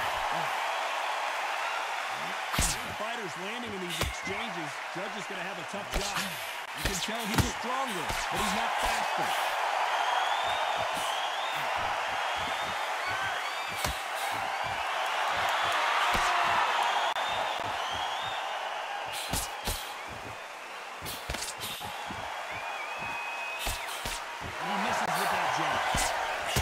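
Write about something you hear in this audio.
A crowd murmurs and cheers steadily in a large arena.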